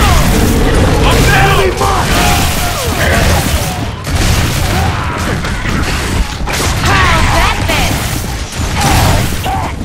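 Shotgun blasts boom loudly.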